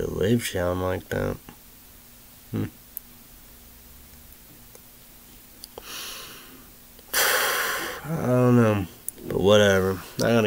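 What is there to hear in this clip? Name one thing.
A man speaks close to a microphone, with animation.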